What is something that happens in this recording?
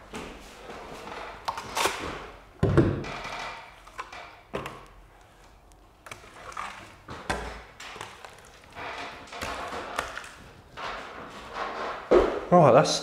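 A scraper scrapes against a ceiling in short strokes.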